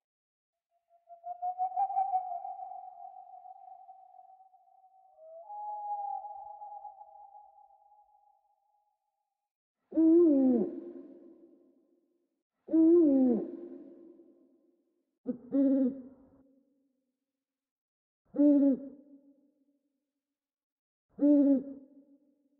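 An owl hoots in long, deep calls, again and again.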